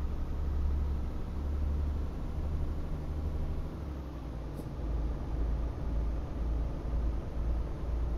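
Tyres roll on a smooth road with a steady rumble.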